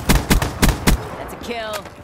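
Rapid gunshots ring out close by.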